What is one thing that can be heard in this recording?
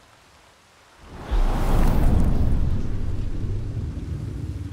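A magic spell bursts with a deep roar and crackle.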